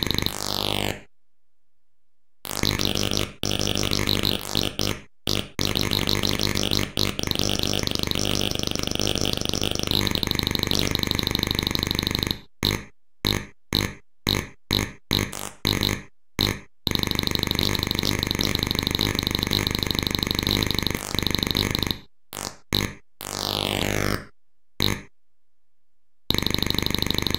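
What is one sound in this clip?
Electronic game music beeps and buzzes in a fast, choppy rhythm.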